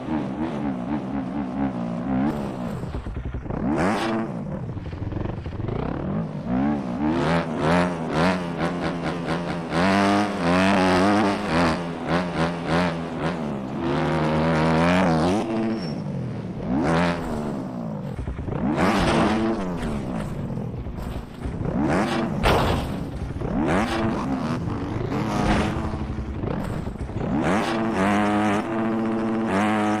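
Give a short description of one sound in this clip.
A motorcycle engine revs up and down, rising and falling in pitch.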